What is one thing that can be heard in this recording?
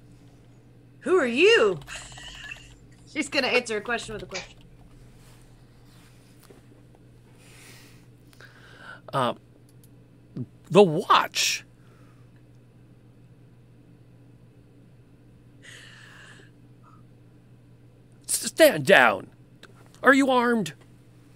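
Women laugh through microphones on an online call.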